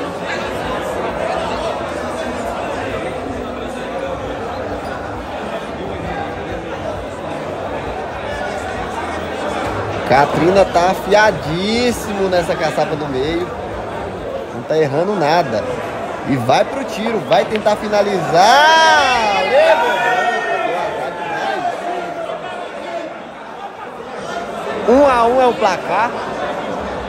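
A crowd murmurs steadily in a large room.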